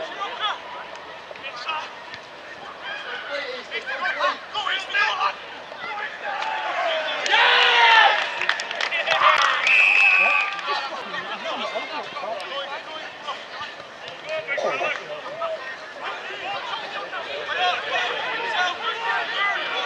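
Men shout and call out to each other outdoors.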